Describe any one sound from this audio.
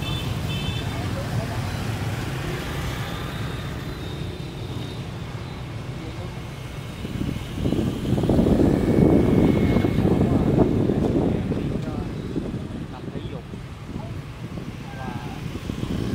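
Motorbike engines hum steadily in busy street traffic.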